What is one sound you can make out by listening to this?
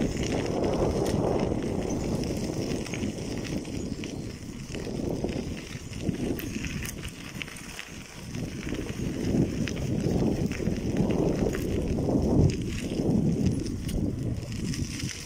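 Bicycle tyres crunch over gravel.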